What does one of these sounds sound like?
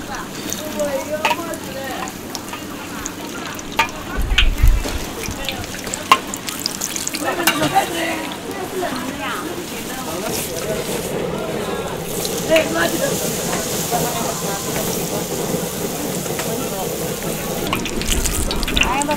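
Metal utensils clink against a metal pan and rack.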